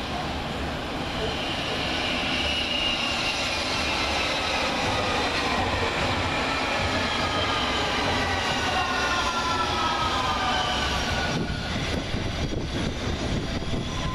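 A train rumbles past close by on the rails, its motors whining down in pitch.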